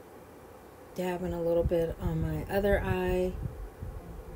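A woman speaks briefly and calmly, close by.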